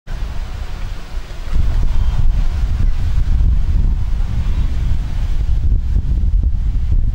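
Wind blows outdoors with a low, steady rumble.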